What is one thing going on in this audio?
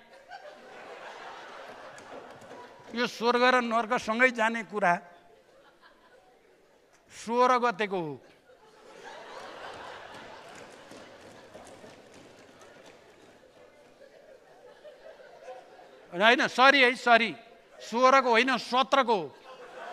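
Men in an audience murmur and chuckle in the background.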